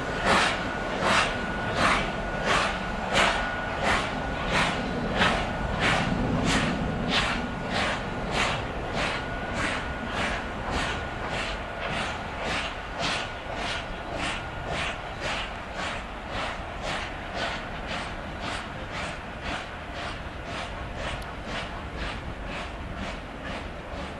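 A steam locomotive chuffs in rapid, rhythmic puffs of exhaust.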